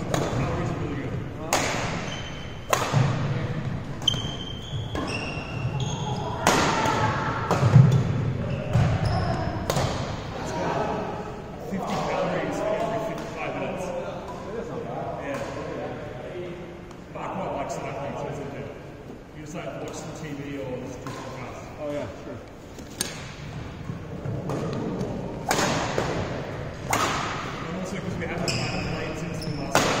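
Badminton rackets smack shuttlecocks in a large echoing hall.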